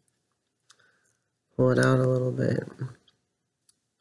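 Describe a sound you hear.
Small scissors snip.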